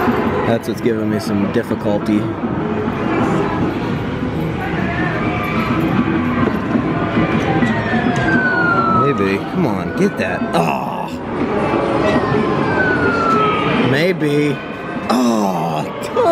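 Arcade machines play electronic music and jingles throughout.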